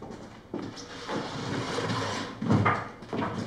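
A chair scrapes across a wooden floor.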